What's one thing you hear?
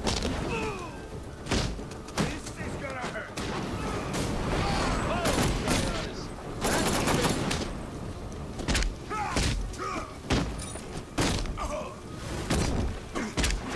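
Men grunt and cry out in pain as they are struck.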